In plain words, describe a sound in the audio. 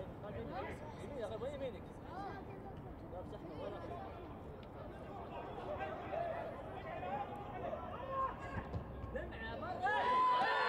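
A distant stadium crowd chants and cheers.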